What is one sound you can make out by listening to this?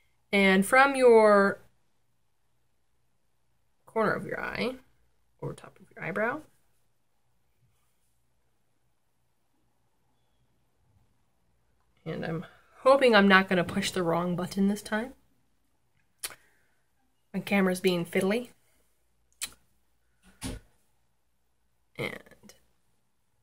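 A young woman talks close by, calmly, in short bursts with pauses.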